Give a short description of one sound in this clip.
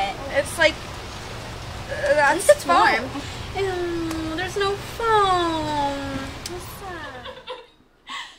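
Young women talk and laugh outdoors, close by.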